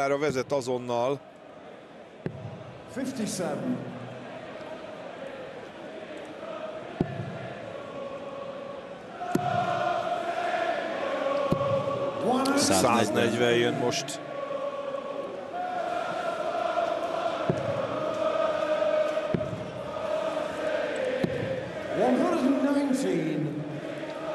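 A large crowd sings and chants in an echoing hall.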